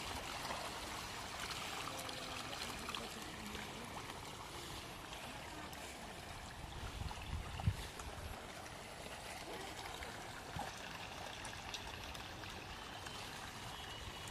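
Fish splash and thrash at the water's surface.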